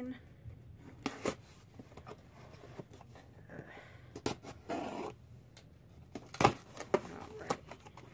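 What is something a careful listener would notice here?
Records knock and rustle as they are handled close by.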